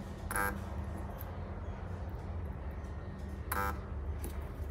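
A spot welder gives short, sharp buzzing zaps.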